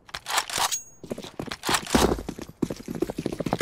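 A rifle is pulled out with a short metallic clatter.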